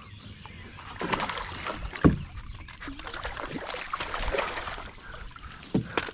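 A fish thrashes and splashes beside a boat as a net scoops it up.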